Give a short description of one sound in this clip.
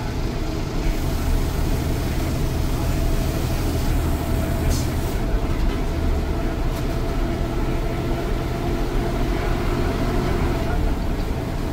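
A bus engine rumbles and drones steadily.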